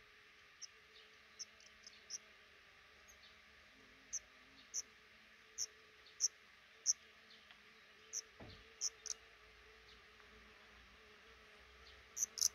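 Nestlings chirp in short high peeps, close by.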